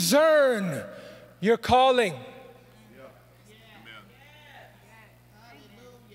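A man speaks with emphasis into a microphone in a large echoing hall.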